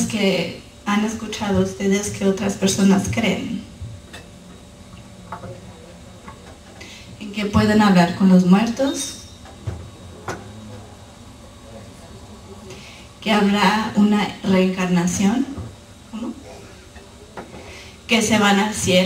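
A woman speaks calmly through a microphone in a large echoing room, with pauses between phrases.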